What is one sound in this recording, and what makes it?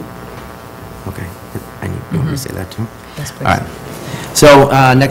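A man speaks through a microphone in a large room, with a slight echo.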